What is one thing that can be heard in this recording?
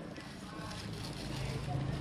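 Leaves rustle as a plant is handled.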